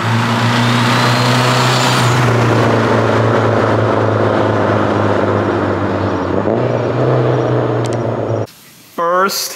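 A car engine roars loudly.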